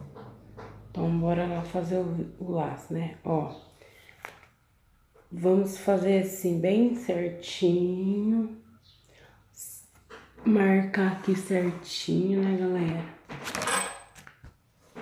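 A woman speaks calmly close by, as if explaining.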